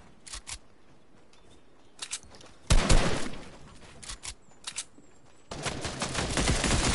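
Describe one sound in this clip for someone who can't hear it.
Footsteps patter on the ground in a video game.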